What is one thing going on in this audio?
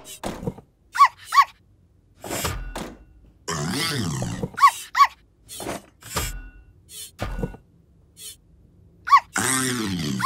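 Robot joints whir and squeak as arms reach about.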